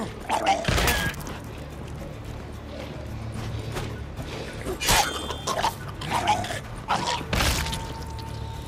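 Sword blows slash and strike a creature.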